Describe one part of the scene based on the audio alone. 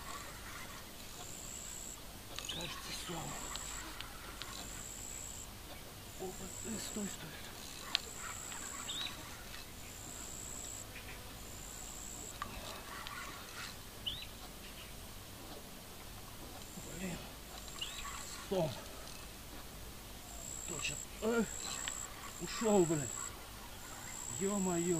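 A fishing rod swishes through the air.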